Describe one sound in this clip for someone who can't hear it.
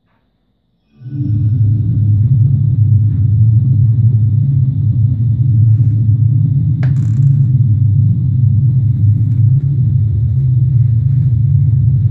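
A synthesizer plays a deep, rumbling drone that starts suddenly and holds steady.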